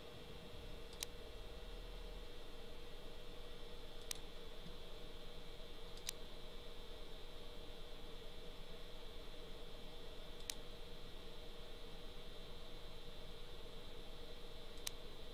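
Short, soft menu clicks sound now and then.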